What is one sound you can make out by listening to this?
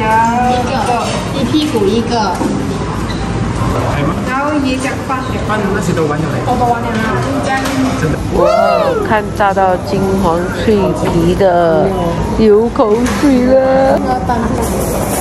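A young woman speaks casually nearby.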